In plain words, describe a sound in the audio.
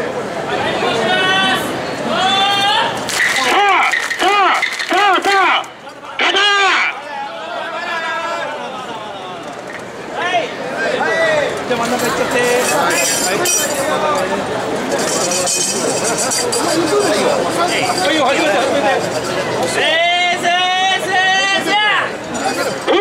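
Festival carriers chant loudly in rhythm.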